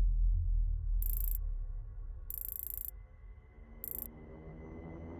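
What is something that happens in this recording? Short, bright electronic chimes sound a few times.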